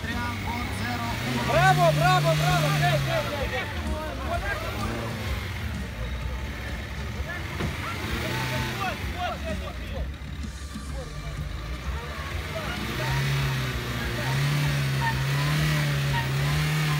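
A car engine revs hard and strains in mud.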